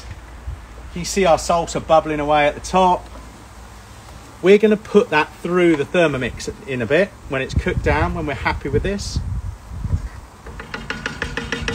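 A wooden spoon scrapes and stirs sauce in a pan.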